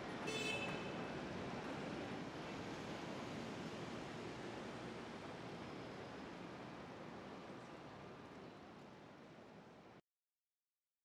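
A distant city hums steadily and slowly fades.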